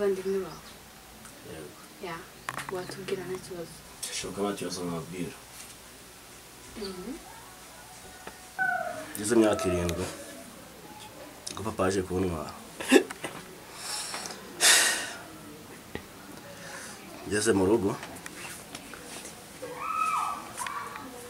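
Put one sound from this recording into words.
A young man talks quietly nearby.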